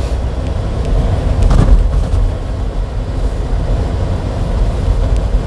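A vehicle's engine rumbles low and steady from inside the cab.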